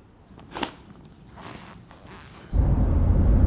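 Shoelaces rustle as they are tied.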